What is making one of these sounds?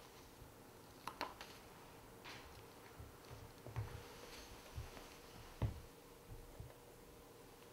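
Fingers tap and click softly against a plastic toy.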